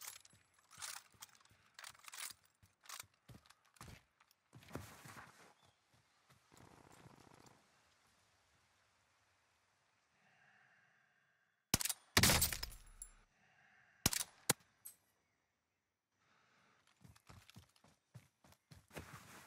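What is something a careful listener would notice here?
Footsteps thud quickly through grass and brush.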